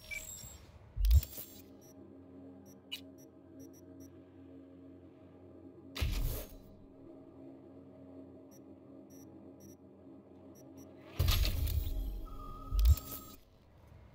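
A game menu opens and closes with electronic whooshes and clicks.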